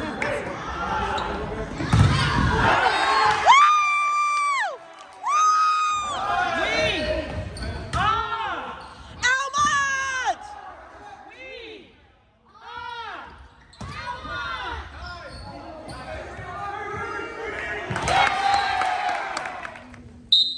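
Young men call out to each other in a large echoing hall.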